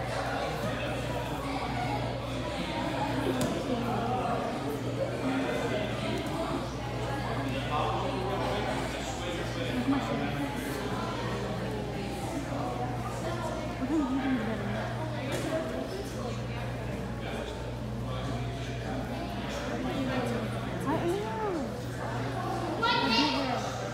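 Many children and adults talk and call out at once in a large echoing hall.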